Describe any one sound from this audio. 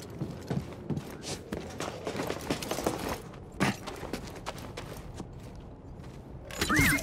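Footsteps tap on metal and rock.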